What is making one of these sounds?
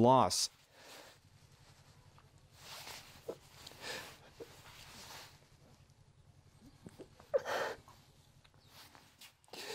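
A young man sobs and sniffles up close.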